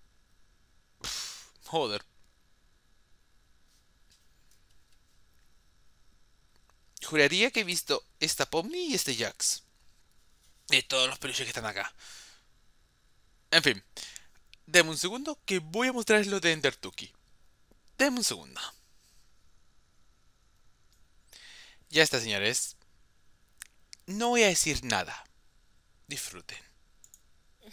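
A young man speaks with animation into a headset microphone, close by, in short bursts with pauses.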